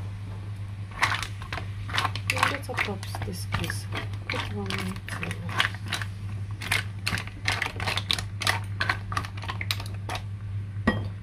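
Mussel shells clatter and click as a spatula stirs them in a pan.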